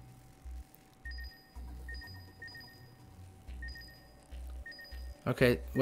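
Short electronic beeps chirp in quick bursts.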